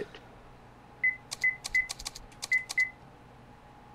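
Short electronic menu blips sound in quick succession.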